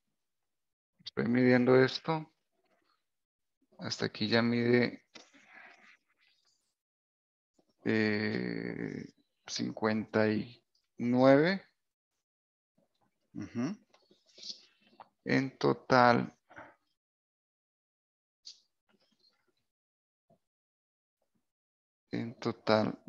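An older man speaks calmly and close to a microphone, in short bursts with pauses.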